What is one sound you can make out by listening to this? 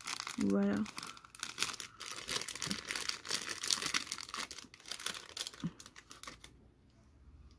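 A plastic bag crinkles and rustles as it is opened.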